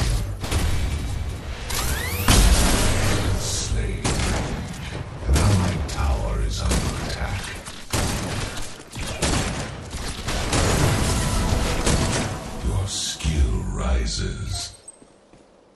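Guns fire and blasts boom in rapid bursts.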